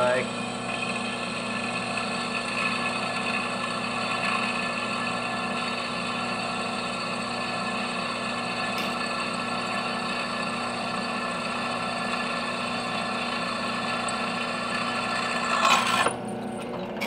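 A drill press whirs steadily as it bores into a piece of wood.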